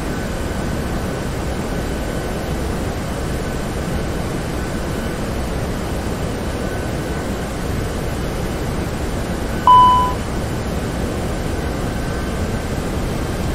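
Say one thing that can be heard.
Jet engines roar steadily with a low rumble.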